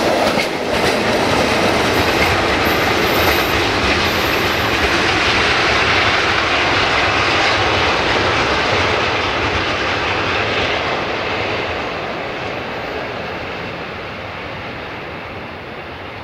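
A train rumbles steadily along the rails and slowly quietens.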